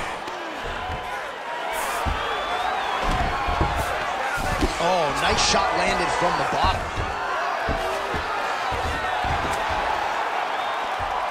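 Punches land with dull thuds.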